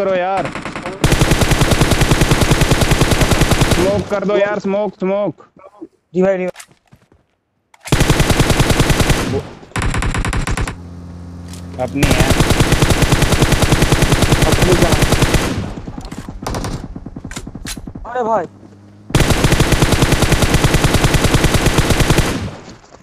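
Automatic rifle fire rattles in rapid, loud bursts.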